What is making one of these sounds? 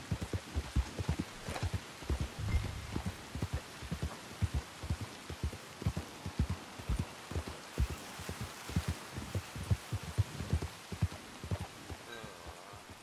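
Horse hooves thud steadily on soft ground at a walk.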